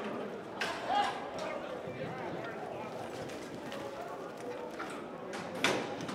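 A horse gallops on soft dirt.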